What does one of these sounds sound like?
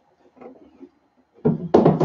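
A large plastic sheet rattles as it is handled.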